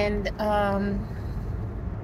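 A woman speaks close by, briefly.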